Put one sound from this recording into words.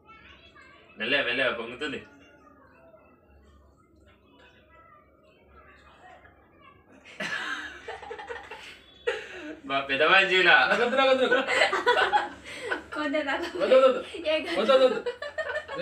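A young woman laughs and talks nearby.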